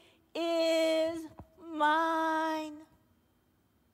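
A woman sings out two long, drawn-out notes through a loudspeaker.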